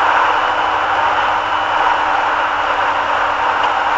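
An oncoming truck roars past.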